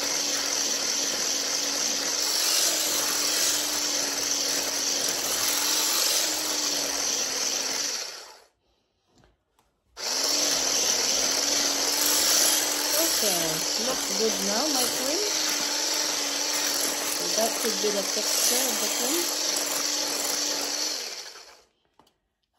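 A hand blender whirs steadily, stopping briefly and starting again.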